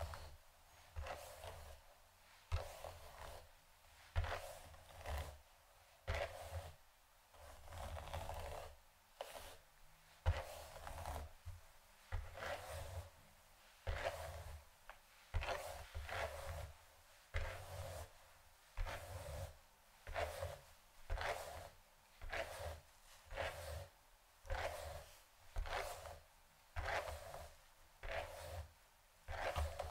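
A brush sweeps through long hair in steady, repeated strokes.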